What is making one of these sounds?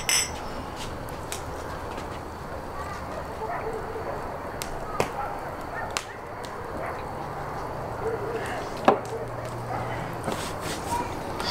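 A wood fire crackles.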